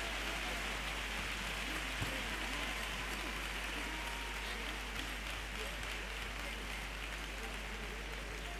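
A large group of men sings together, heard from a distance in a large hall.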